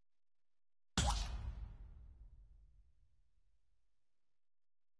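A game menu plays a deep booming whoosh that fades out slowly.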